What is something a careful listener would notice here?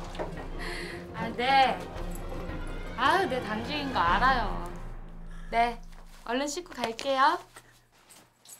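A young woman talks on a phone with animation.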